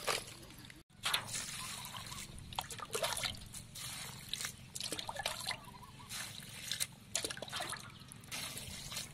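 Water splashes as it is poured from a bowl over insects.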